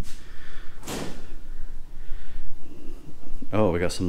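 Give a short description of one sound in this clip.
A refrigerator door is pulled open.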